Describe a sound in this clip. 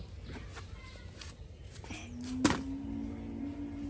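A plastic bucket knocks against the ground.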